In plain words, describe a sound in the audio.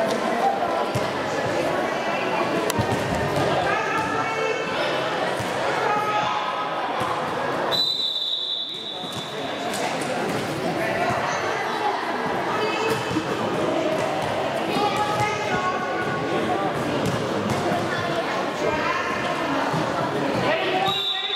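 Young girls shout and call out across a large echoing hall.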